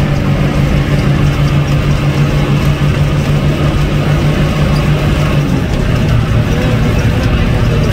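An engine rumbles steadily close by.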